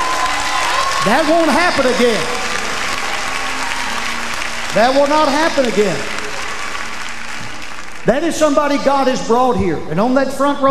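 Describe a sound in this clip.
A middle-aged man preaches forcefully into a microphone, heard through loudspeakers in a large hall.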